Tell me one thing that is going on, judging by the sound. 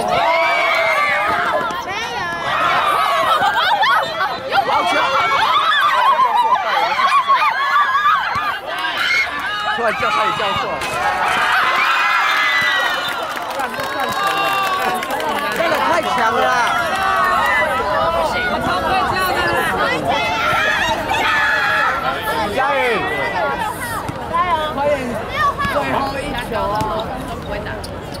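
A crowd of teenage girls cheers and shouts excitedly outdoors.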